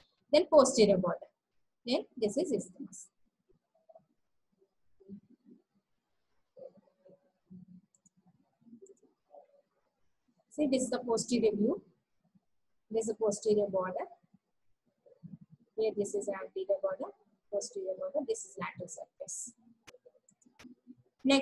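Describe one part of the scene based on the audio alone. A young woman speaks calmly into a microphone, explaining in bursts with pauses.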